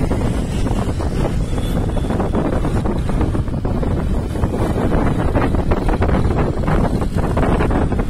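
Wind rushes loudly past, as from a moving vehicle.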